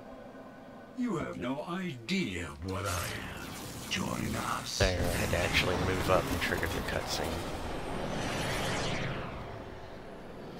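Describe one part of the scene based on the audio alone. Loud blasts and crashes boom and rumble.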